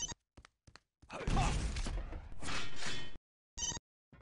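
A rocket explodes with a loud blast.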